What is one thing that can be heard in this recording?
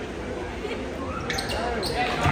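Spectators cheer and clap.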